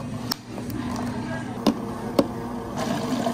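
Lids snap onto plastic cups.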